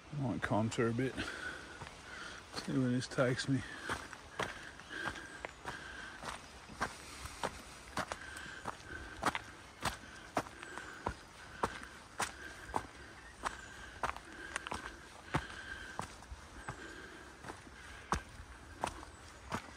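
Footsteps crunch and squelch steadily on a wet dirt trail.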